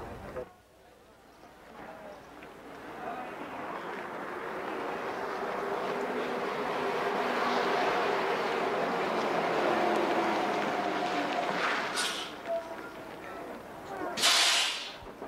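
A bus engine rumbles as the bus drives up and slows to a stop.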